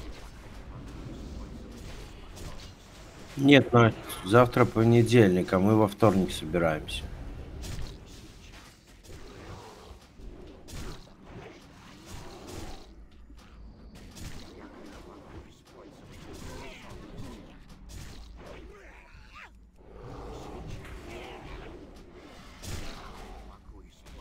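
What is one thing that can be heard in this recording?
Spell blasts and weapon hits crackle and thump in a fast battle.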